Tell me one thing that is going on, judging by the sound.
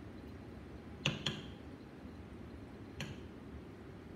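Glass clinks lightly against glass.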